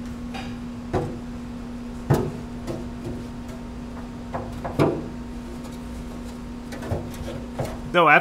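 A plastic dashboard panel knocks and scrapes as it is lifted into place.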